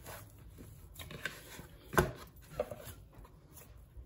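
Hands knead soft dough in a plastic bowl.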